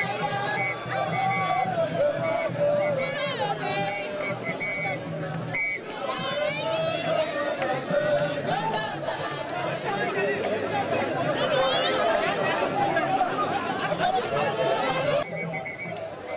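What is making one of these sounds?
A group of young women sing together outdoors.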